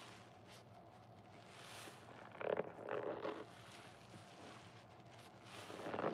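Foam crackles and fizzes softly.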